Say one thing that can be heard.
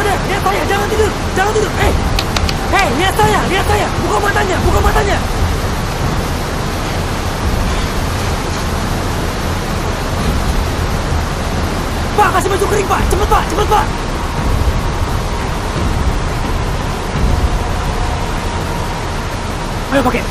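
Heavy rain and rushing water roar steadily outdoors.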